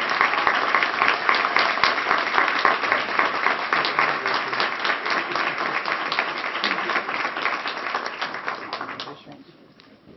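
A crowd applauds loudly.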